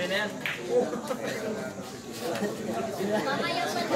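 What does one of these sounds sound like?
Billiard balls click together on a shot.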